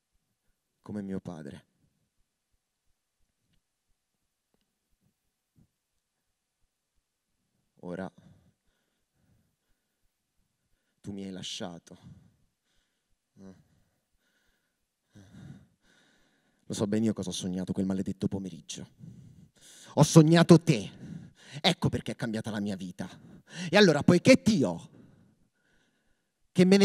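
A man speaks slowly and dramatically into a microphone, with long pauses.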